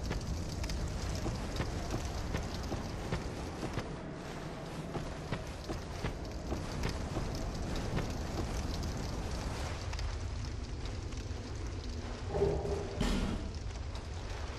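A sword swings through the air with a swish.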